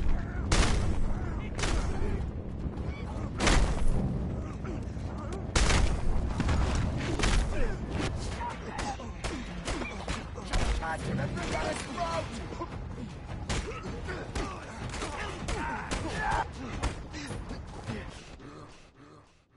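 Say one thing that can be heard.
Heavy punches thud and smack in a brawl.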